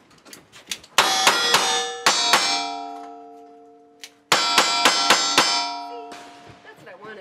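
Steel targets ring out with a bright, lingering clang when hit.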